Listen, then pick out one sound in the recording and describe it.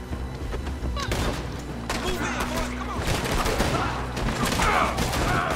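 Heavy blows land with dull thuds.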